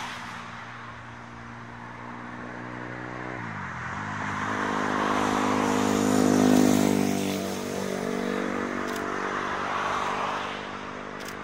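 An electric train approaches with a growing motor hum.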